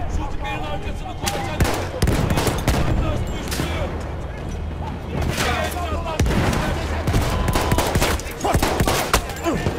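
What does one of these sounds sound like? Pistol shots crack sharply, several times.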